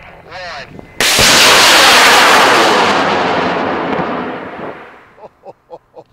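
A model rocket launches with a loud, rushing roar that fades as it climbs away.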